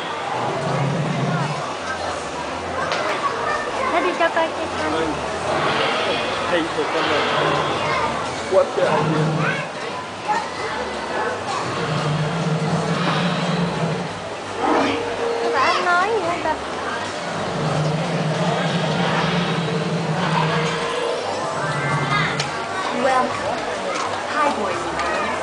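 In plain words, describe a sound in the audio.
A crowd of people chatters in a busy indoor space.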